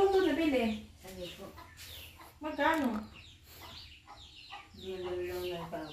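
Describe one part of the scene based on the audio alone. A woman speaks close by in a lilting, animated voice.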